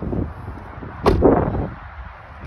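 A car door slams shut with a heavy thump.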